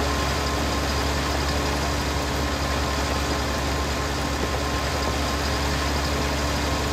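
A machine towed behind a tractor whirs and rattles.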